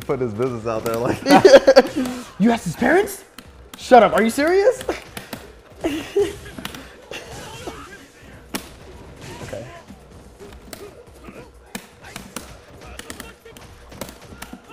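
Punches and kicks land with sharp thuds and cracks.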